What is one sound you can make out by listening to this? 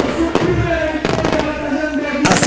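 Fireworks crackle and pop.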